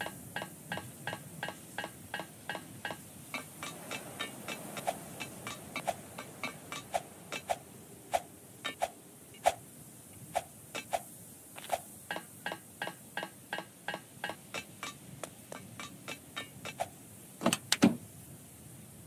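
Footsteps tap in a steady rhythm.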